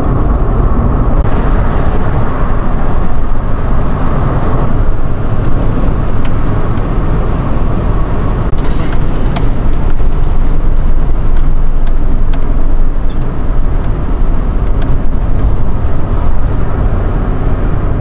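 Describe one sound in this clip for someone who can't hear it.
A car's engine hums steadily inside the cabin.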